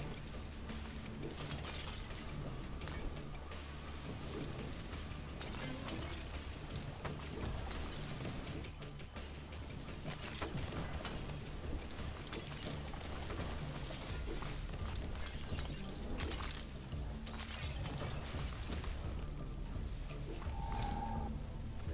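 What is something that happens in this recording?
Lightning bolts crack sharply.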